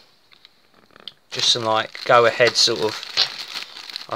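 Plastic food packaging crinkles and rustles in a hand.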